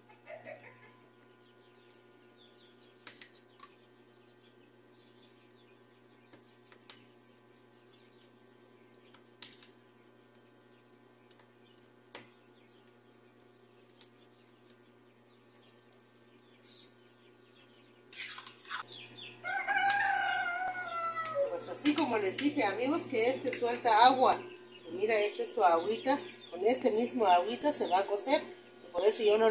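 A spoon scrapes and clinks against a pan.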